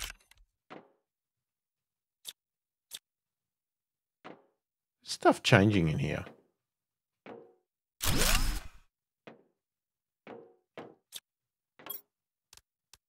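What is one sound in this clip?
A man speaks in short, calm bursts close to a microphone.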